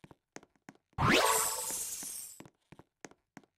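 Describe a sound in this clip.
A game sound effect swooshes upward with a burst of chimes.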